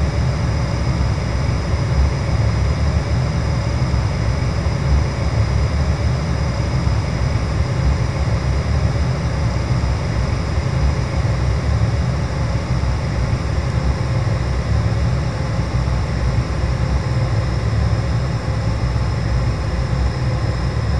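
Jet engines roar steadily as an airliner taxis.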